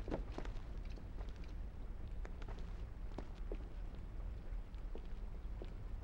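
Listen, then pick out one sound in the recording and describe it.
Feet thud and scrape on a wooden beam.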